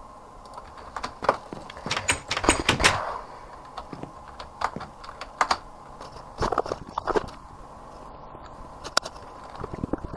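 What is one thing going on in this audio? Footsteps thud on wooden and stone steps.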